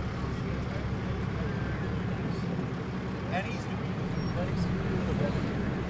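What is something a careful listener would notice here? Young men chat quietly nearby outdoors.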